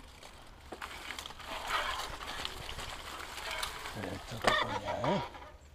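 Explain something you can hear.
Dry grass swishes against a moving bicycle.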